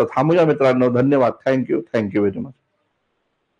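A man speaks calmly into a close microphone.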